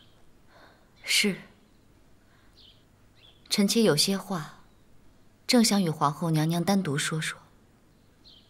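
A young woman replies softly and politely.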